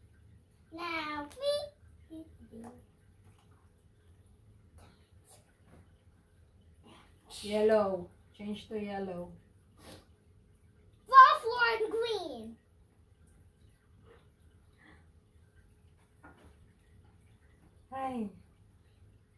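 A young girl speaks in a high, excited voice nearby.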